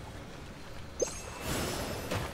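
A bell rings with a bright chime.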